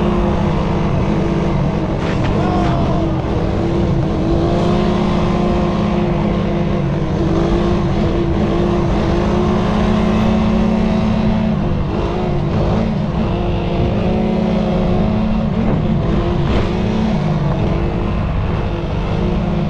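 A quad bike engine roars and revs up and down close by.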